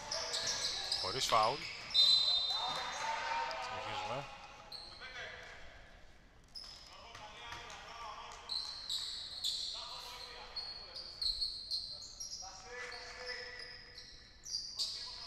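Male players shout to each other across the court.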